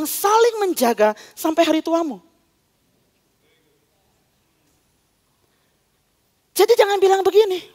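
A woman speaks calmly through a microphone, pausing between phrases.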